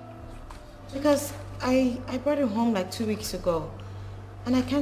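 Another young woman answers in an upset voice nearby.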